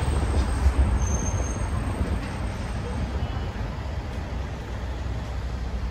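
Traffic rumbles past on a nearby street outdoors.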